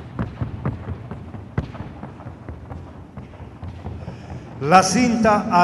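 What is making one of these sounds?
Horse hooves tap rapidly and sharply on hard ground.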